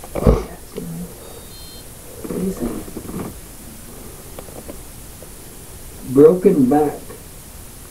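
A man speaks briefly in short phrases nearby.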